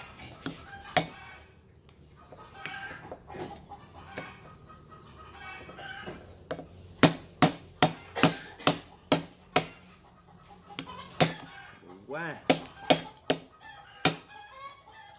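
A cleaver chops sharply on a wooden block, many times in a quick rhythm.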